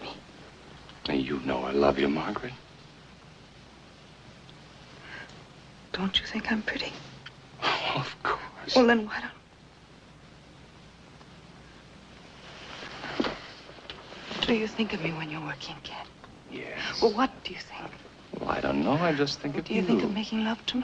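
A man answers quietly and close by.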